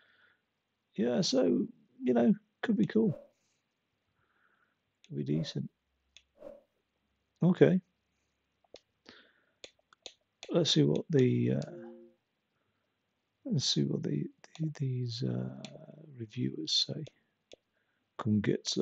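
A young man talks calmly and closely into a microphone, in short bursts with pauses.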